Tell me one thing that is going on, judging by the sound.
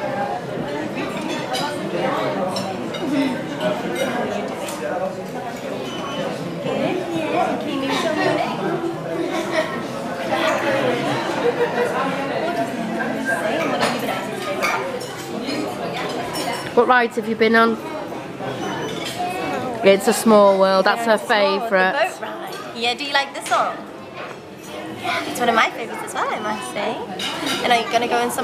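A young woman talks warmly and gently up close.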